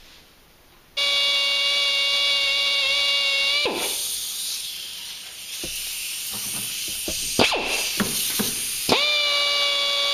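A pneumatic air tool whines steadily at high speed.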